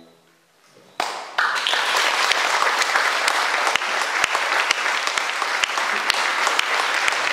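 An audience claps loudly and steadily in an echoing hall.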